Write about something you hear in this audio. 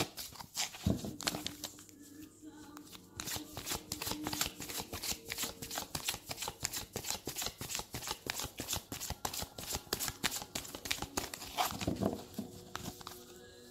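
A cardboard box is handled and tapped.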